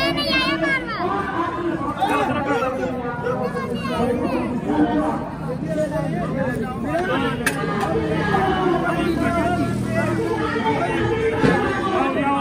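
A crowd of adults and children chatters and calls out close by, outdoors.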